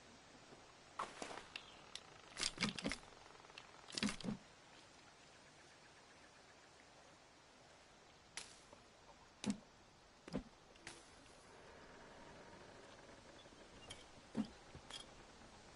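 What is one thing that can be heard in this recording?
Wooden sticks clatter and knock as they are set down.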